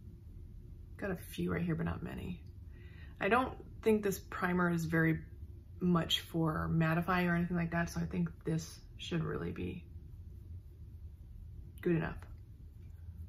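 A woman speaks calmly and close up, facing the listener.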